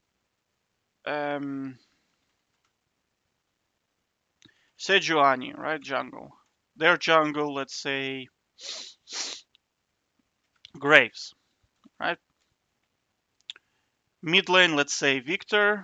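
A young man talks casually into a close microphone, in short bursts with pauses.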